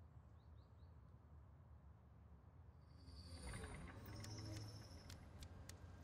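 Rain patters steadily on a window.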